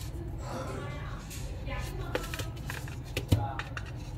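A box lid slides off with a soft scrape.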